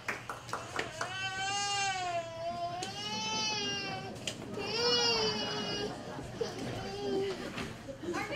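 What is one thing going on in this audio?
A choir sings in a large echoing hall.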